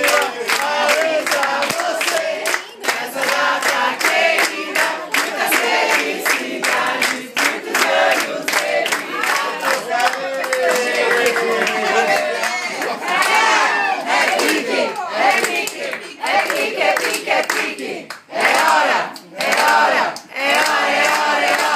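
Several people clap their hands in rhythm.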